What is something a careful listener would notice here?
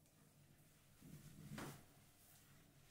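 A towel rubs against skin.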